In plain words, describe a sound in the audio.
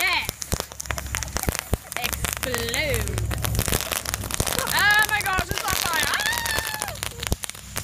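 A firework fountain hisses steadily as it burns.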